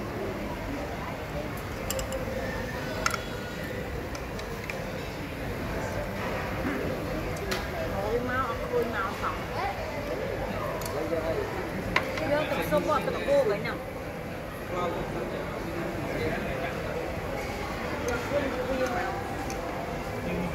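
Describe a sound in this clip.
Chopsticks and utensils clink against dishes.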